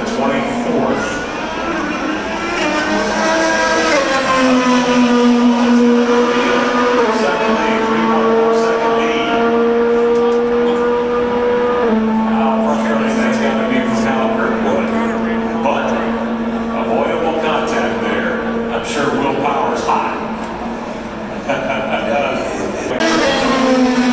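Race car engines drone loudly, with pitch shifting as the cars speed around a track.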